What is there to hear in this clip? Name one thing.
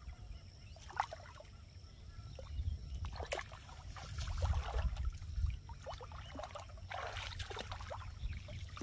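Water splashes and trickles nearby.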